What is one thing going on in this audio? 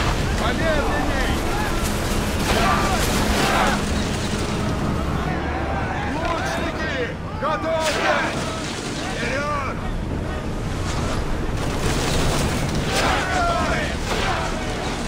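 Men shout in battle.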